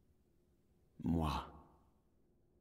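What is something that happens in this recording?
A man lets out a short, loud exclamation close to a microphone.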